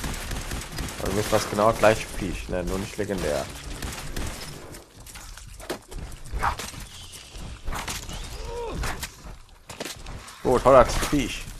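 A large creature shrieks and growls close by.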